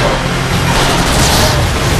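An explosion bursts loudly with crashing debris.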